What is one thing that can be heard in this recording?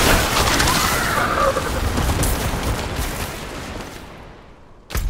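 An icy blast bursts and crackles loudly.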